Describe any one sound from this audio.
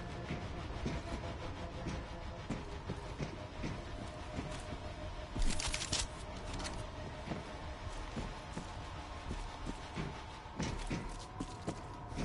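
Footsteps clank on metal grating in an echoing tunnel.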